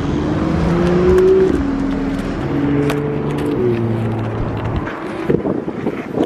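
Footsteps tread on pavement.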